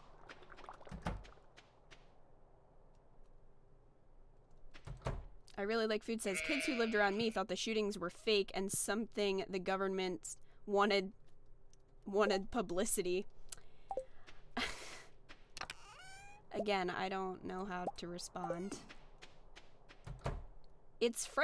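A door thuds open and shut.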